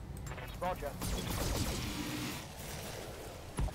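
Laser weapons fire with a sharp buzzing zap.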